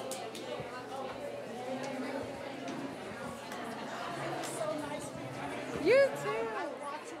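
A crowd of women chatters in a large room.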